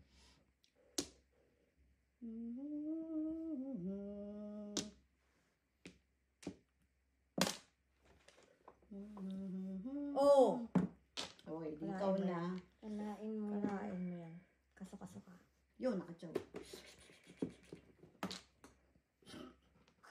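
Mahjong tiles click and clack against each other on a table.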